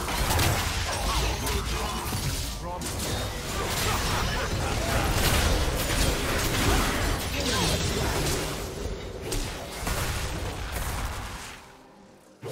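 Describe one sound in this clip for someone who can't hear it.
Game spell effects crash and whoosh during a fight.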